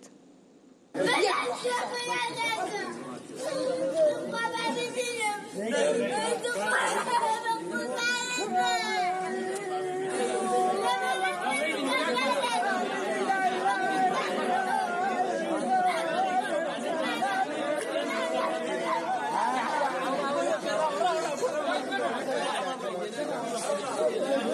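A crowd of men and women sob and lament together.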